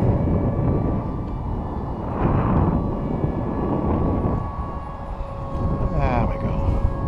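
A jet plane roars steadily high overhead.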